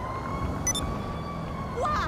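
A car drives off down the street.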